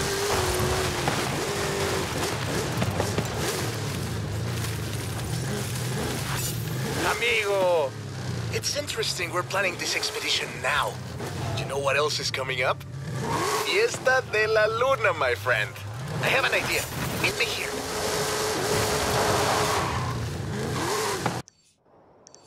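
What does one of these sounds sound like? A car engine roars and revs as a vehicle drives over rough ground.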